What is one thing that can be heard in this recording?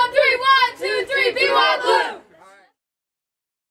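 A group of young boys shout a cheer together loudly.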